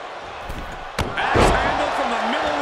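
A body slams hard onto a wrestling mat.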